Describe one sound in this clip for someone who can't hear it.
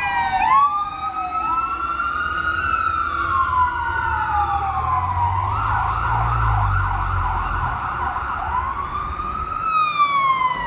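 A fire truck's engine rumbles as it drives past.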